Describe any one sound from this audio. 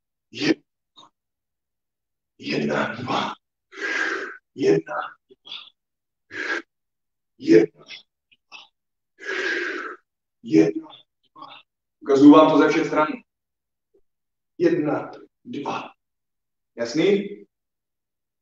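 A man speaks in short, breathy bursts, heard through an online call.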